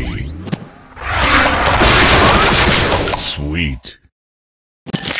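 Bright blasts and whooshes burst as special candies explode.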